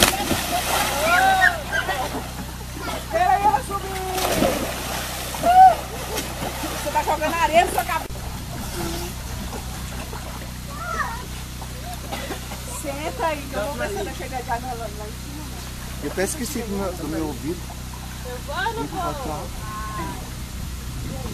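Young people shout and laugh nearby.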